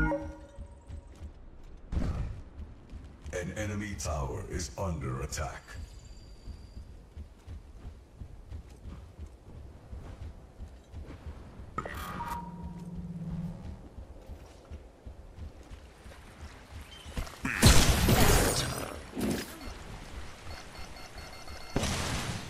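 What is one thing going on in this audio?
Heavy metal footsteps clank steadily on the ground.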